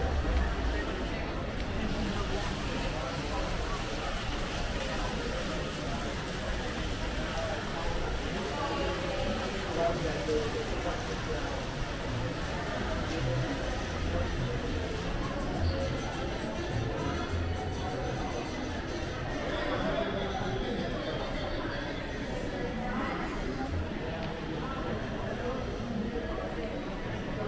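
Footsteps tap on a hard floor close by.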